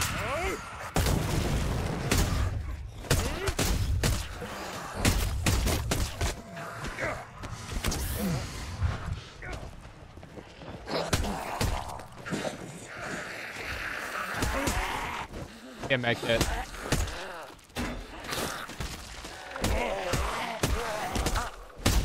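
Heavy melee blows land with wet thuds and crunches.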